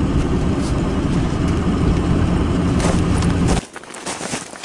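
A vehicle engine roars as it drives over snow.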